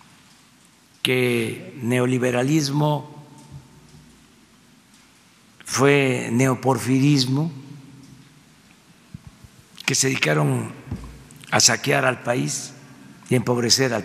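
An elderly man speaks calmly into a microphone, in pauses.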